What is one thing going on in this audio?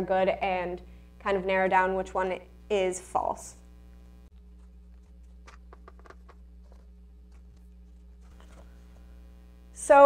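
A young woman speaks clearly and calmly, close by.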